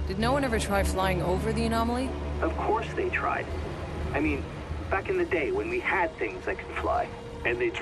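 A cable car rumbles and creaks along its cable.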